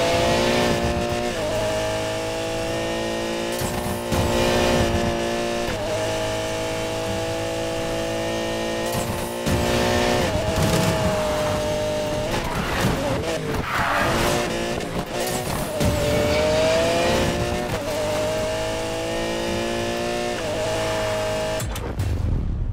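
A sports car engine roars at high revs, its pitch shifting with gear changes.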